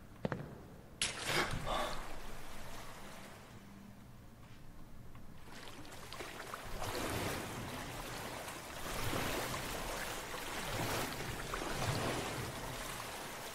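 Water splashes and sloshes as someone wades through it.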